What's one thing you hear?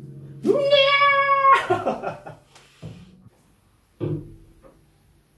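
Acoustic guitar strings ring out as a guitar is handled.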